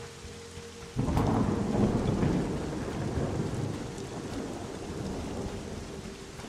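Thunder cracks and rumbles loudly.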